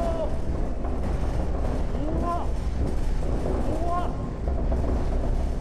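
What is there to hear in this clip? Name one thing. A shaking platform rumbles heavily and rattles.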